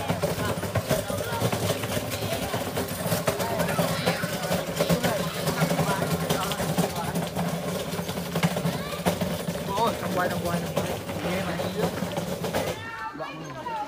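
A motorbike engine idles and putters along at low speed.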